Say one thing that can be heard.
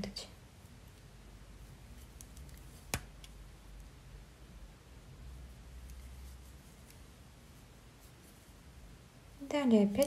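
A crochet hook softly clicks and rustles through yarn.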